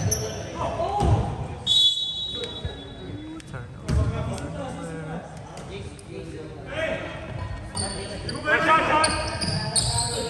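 Men shout to each other during a basketball game in an echoing gym.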